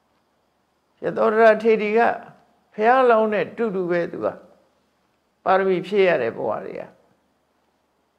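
An elderly man speaks calmly and slowly in short phrases, close to a microphone.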